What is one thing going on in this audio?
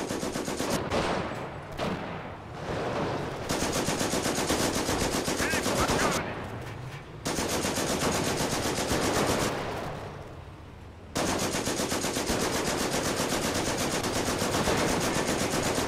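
Rifles and machine guns fire in bursts.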